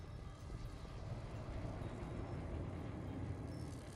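A large wolf snarls and growls.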